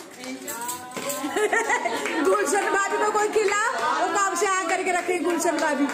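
Women cheer and shout excitedly.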